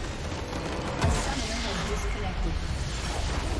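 A structure explodes with a deep boom.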